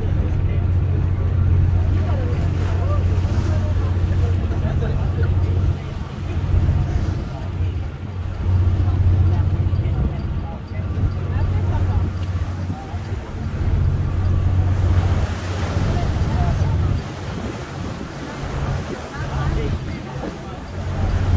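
A boat engine hums low and steady.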